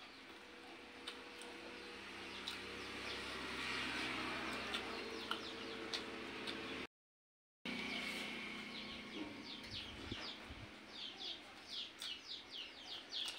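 Fingers squish and mix rice on a metal plate.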